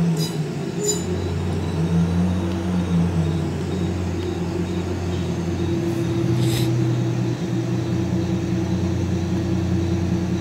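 A tractor engine idles with a steady low hum.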